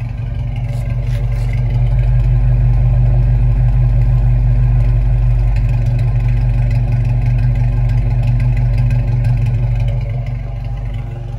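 A car exhaust pipe blows out a loud, throbbing drone close by.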